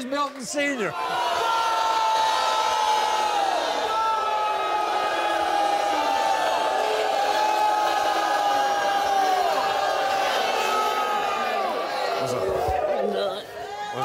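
A studio audience cheers and whoops loudly.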